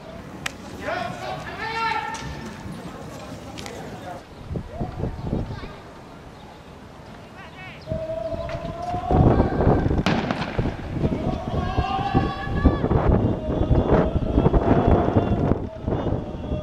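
Young men shout and yell outdoors at a distance.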